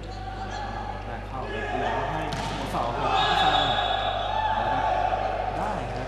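A volleyball is struck during a rally in a large indoor hall.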